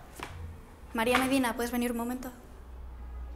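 A young woman speaks clearly nearby.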